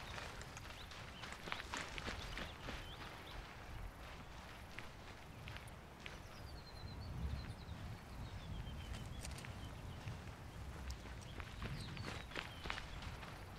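Boots shuffle and step on hard ground.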